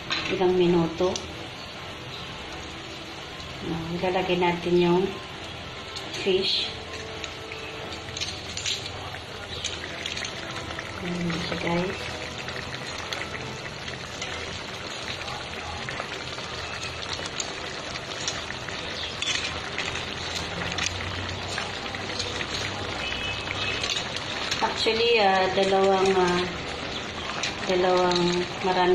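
Hot oil sizzles and crackles steadily in a pan.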